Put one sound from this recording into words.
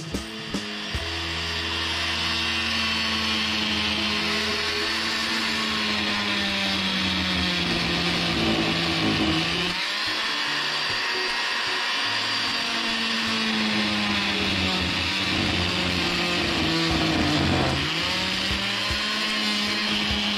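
An oscillating multi-tool buzzes loudly and steadily as it cuts into wood, its pitch dipping now and then.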